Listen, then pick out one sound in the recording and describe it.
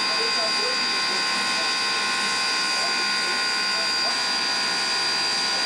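A steam locomotive hisses steadily while standing still.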